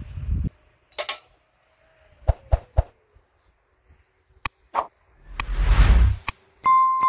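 Metal dishes clink and clatter nearby.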